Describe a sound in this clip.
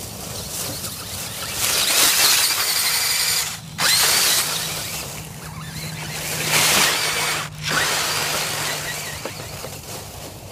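Tyres crunch through dry leaves.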